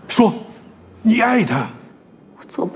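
An elderly man shouts angrily.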